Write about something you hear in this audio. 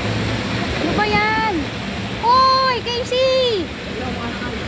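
A young girl calls out loudly in high, drawn-out shouts nearby.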